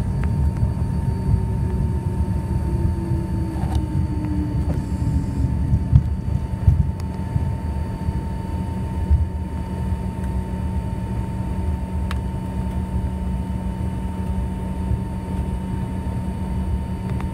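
A jet engine hums and roars steadily from inside an aircraft cabin.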